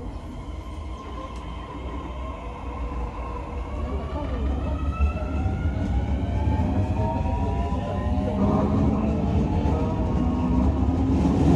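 A train pulls away, its motor whining and rising in pitch as it speeds up.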